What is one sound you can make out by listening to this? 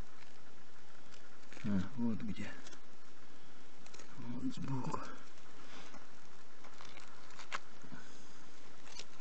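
Gloved fingers scrape and crumble damp soil.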